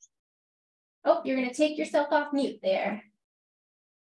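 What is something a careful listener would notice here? A woman speaks animatedly over an online call.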